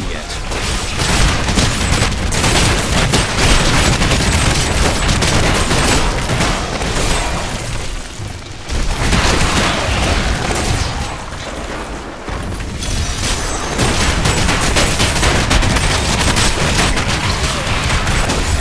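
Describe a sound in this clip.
Magic blasts and weapon hits clash in a fantasy video game battle.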